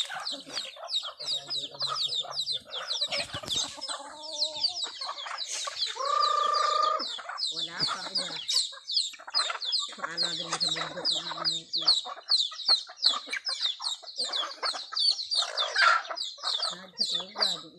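Many chickens cluck and chirp busily outdoors.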